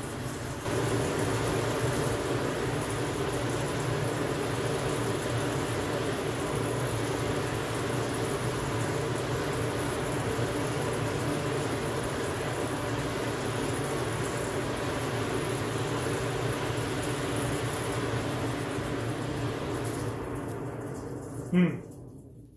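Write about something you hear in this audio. A forge fire roars steadily under a blower.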